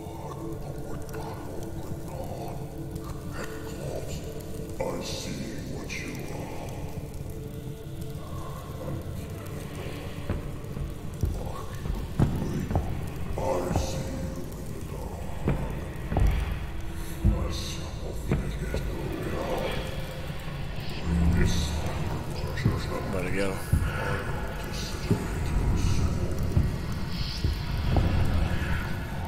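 A torch flame crackles and roars close by.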